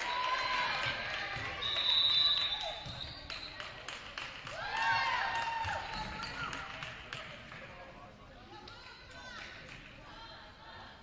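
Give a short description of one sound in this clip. Young women shout and cheer in an echoing gym.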